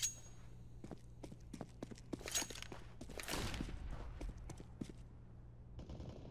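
A pistol is drawn with a metallic click.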